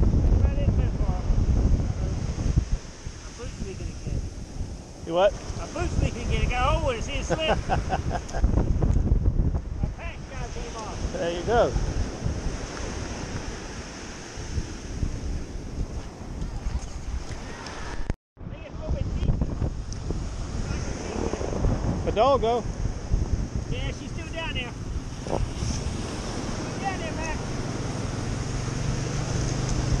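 Waves wash onto the shore nearby.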